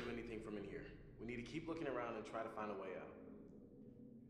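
A young man speaks calmly and quietly.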